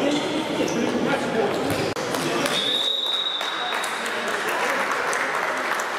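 Young men call out to each other in an echoing sports hall.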